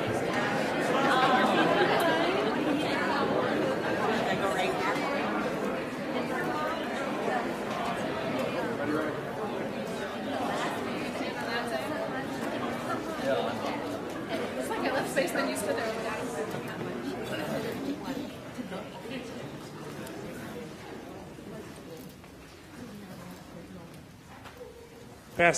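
A crowd of men and women chatter in a large echoing hall, fading as people sit down.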